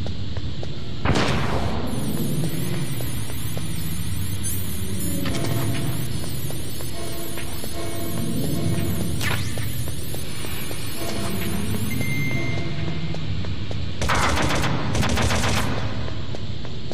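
Gunshots ring out in a video game.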